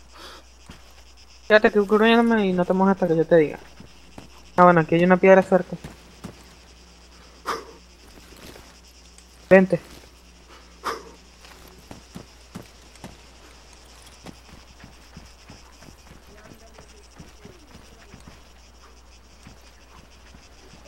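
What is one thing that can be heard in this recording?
Footsteps crunch over dry ground and brush.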